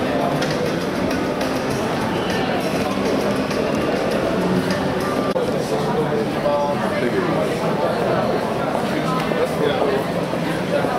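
A crowd of men and women chatters all around in a large, echoing hall.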